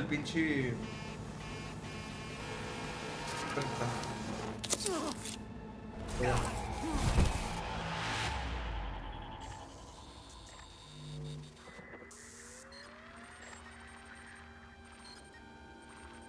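Electronic beeps and tones hum and chirp.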